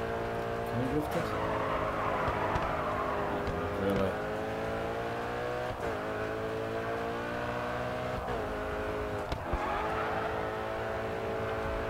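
Tyres screech as a car slides through a bend.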